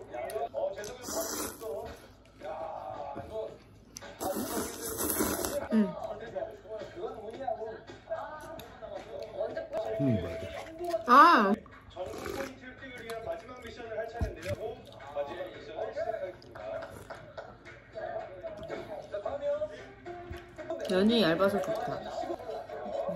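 A young woman slurps noodles loudly and close by.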